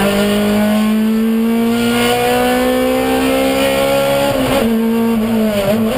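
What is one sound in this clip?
A car engine roars loudly close by, its pitch climbing slowly.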